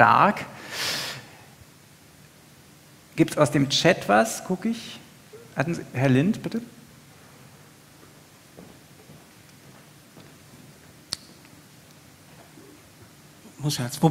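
A man speaks into a microphone in an echoing hall, in short bursts with pauses.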